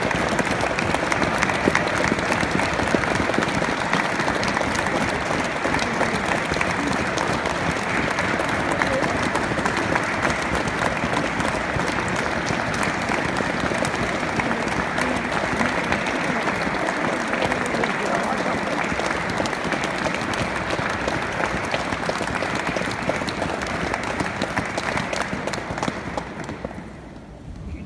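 An audience applauds steadily and then the clapping dies away.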